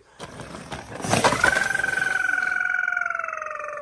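A toy truck knocks into small toy cars with a plastic clatter.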